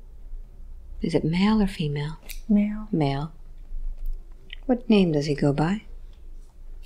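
A woman speaks softly and close to a microphone.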